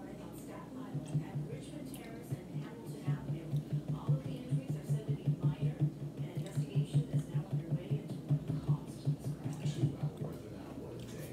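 Liquid glugs rhythmically as it is poured from a bottle into another bottle.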